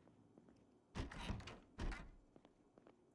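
A door opens with a thud.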